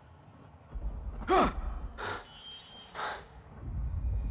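A young man grunts in surprise.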